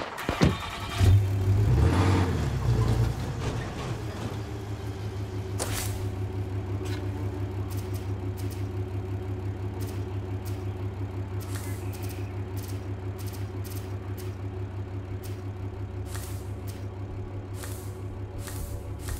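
A truck engine starts and rumbles steadily.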